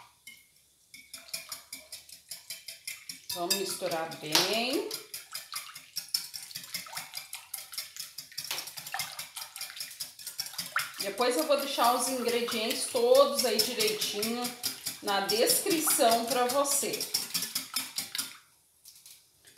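A whisk clinks and scrapes rapidly against a glass bowl.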